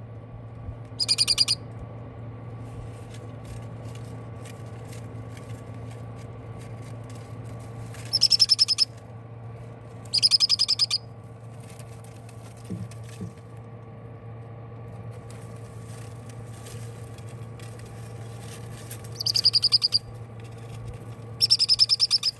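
Baby parrot chicks give rapid, pulsed begging cries in short bursts.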